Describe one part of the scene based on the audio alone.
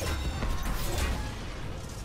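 Electricity crackles loudly.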